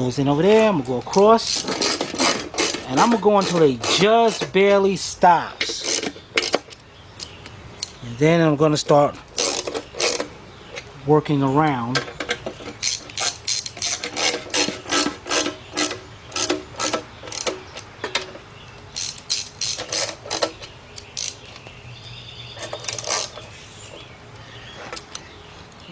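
A ratchet wrench clicks as bolts are loosened.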